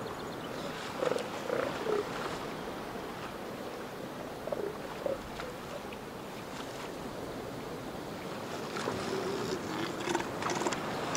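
A young elephant seal bellows and grunts nearby.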